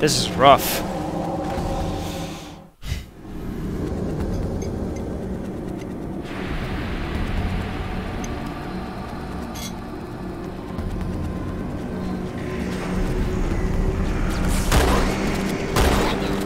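A low, eerie ambient hum drones steadily.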